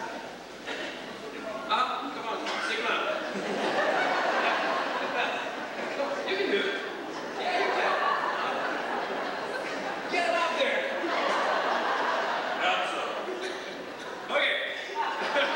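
Several men sing together into microphones, heard from a distance in a large echoing hall.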